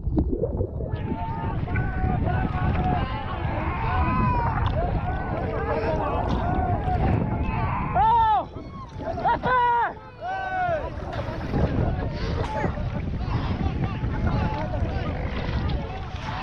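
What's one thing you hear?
A crowd of men in the water shout and cry out in distress.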